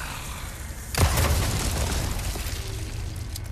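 A gunshot cracks and echoes through a cave.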